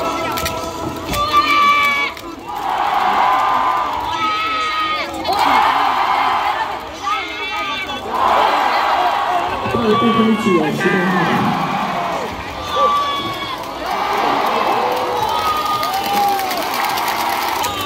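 A large crowd chants and cheers loudly in rhythm in an open stadium.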